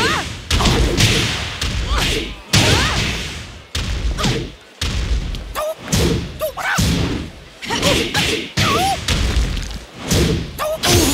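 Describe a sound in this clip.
Heavy punches and kicks land with sharp, booming thuds in quick bursts.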